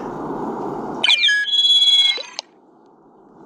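A short run of electronic beeps and chirps plays.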